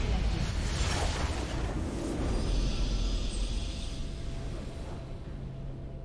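A loud, swelling game victory fanfare rings out and then fades.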